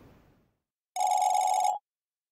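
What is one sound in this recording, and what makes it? A rapid electronic beeping sounds as text types out.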